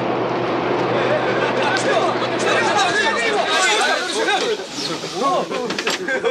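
A group of men shout and yell excitedly nearby.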